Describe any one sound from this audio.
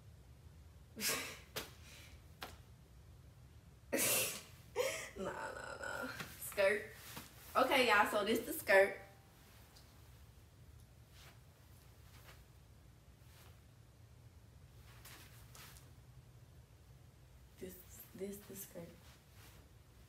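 Clothing fabric rustles.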